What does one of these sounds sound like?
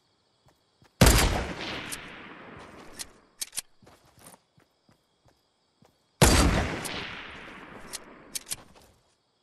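A sniper rifle fires a loud shot that echoes away.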